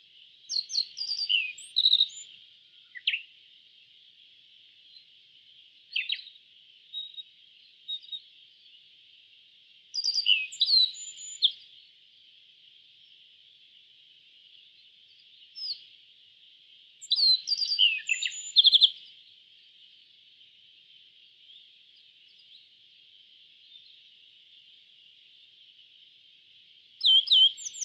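A small bird sings in short bursts of bright chirps and trills.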